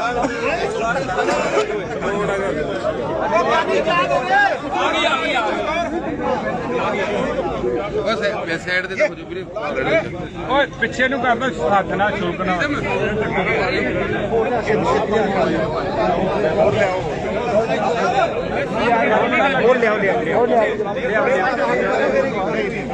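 A crowd of men talk over one another close by, outdoors.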